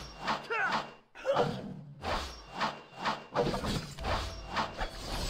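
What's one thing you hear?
Sword-slash effects of a mobile action game whoosh and clash in bursts.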